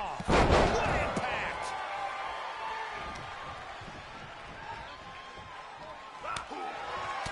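A body slams heavily onto a wrestling mat with a loud thud.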